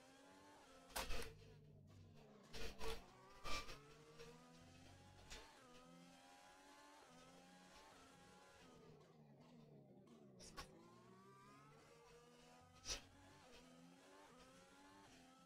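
A racing car engine whines and revs up and down through gear changes.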